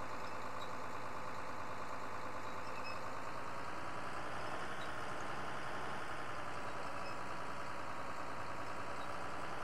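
A tractor engine hums steadily as the tractor drives along.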